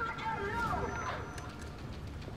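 A woman shouts through a megaphone.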